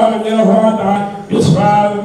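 A man chants loudly into a microphone.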